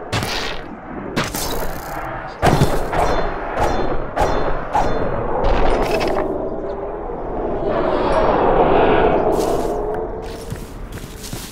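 Sword blows land on creatures with sharp hits.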